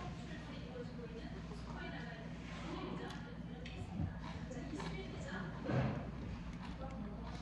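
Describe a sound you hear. A spoon scrapes in a pot of stew.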